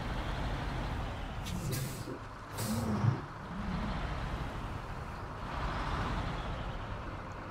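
A heavy truck engine rumbles low and steadily.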